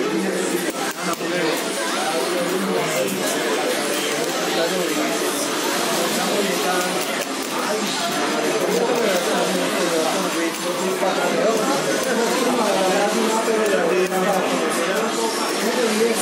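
Arcade game music and sound effects play from a loudspeaker.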